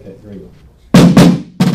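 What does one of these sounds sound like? Drums are struck loudly in a burst of rapid beats.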